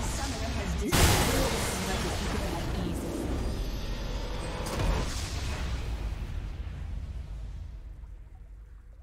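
A triumphant fanfare swells and then fades away.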